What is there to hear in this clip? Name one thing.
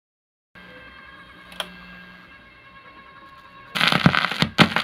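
A record crackles softly as it spins on a turntable.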